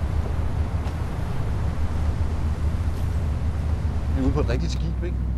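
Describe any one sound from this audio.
Wind rumbles steadily outdoors over the sea.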